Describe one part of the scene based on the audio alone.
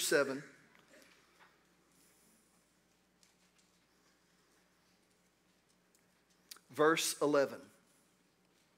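A middle-aged man speaks slowly and quietly into a microphone, with long pauses.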